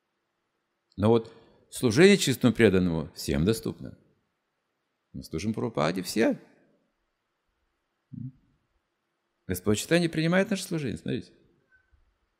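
An elderly man speaks calmly and expressively into a microphone, with pauses between phrases.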